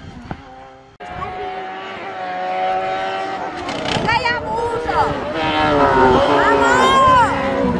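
A racing car engine revs up and down as it approaches from a distance.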